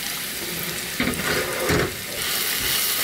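Soy sauce hisses as it is poured into a hot frying pan.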